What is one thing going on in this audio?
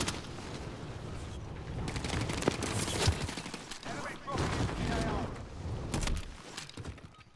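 Wind rushes loudly during a parachute descent.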